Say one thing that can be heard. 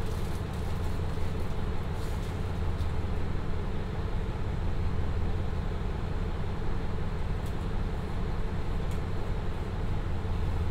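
A diesel engine idles with a steady low rumble close by.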